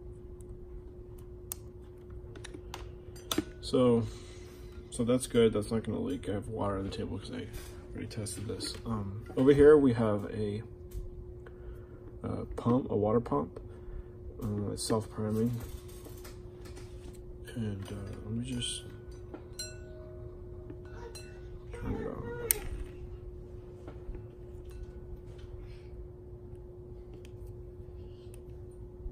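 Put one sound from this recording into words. Wire clips click and tap as they are handled close by.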